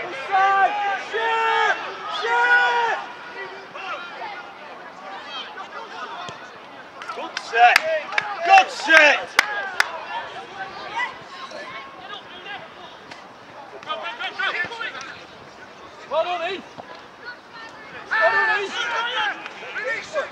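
Young players shout calls to each other outdoors, some distance away.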